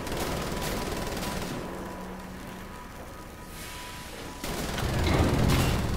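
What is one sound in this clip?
A heavy lever clunks into place.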